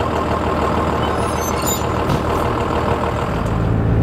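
A bus door folds shut with a clatter.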